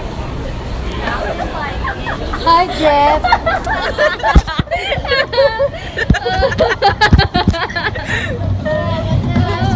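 Several women and girls talk and laugh nearby with animation.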